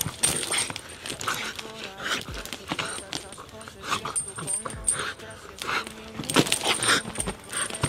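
A dog growls while tugging on a toy.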